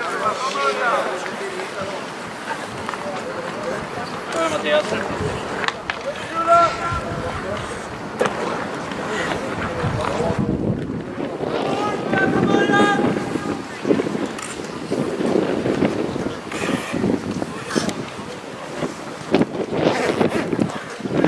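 Players shout to each other across the open ice.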